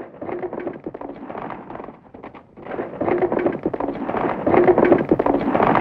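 Horses' hooves clop slowly on a dirt track.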